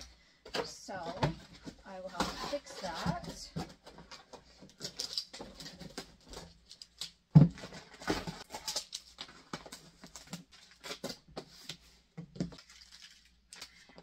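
Cardboard rustles and scrapes as a box is handled.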